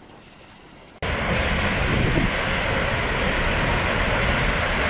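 Water thunders in a powerful, steady roar as it gushes out of a dam.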